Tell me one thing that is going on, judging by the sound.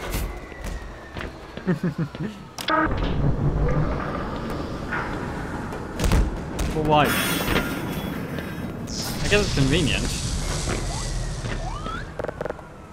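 A rail cart rumbles along metal tracks in an echoing tunnel.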